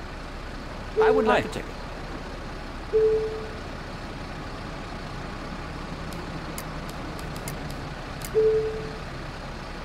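A ticket machine beeps short, several times.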